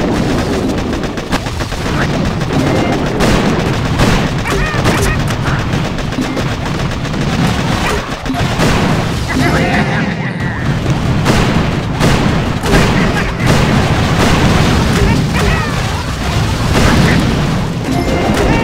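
Explosions boom and crackle again and again.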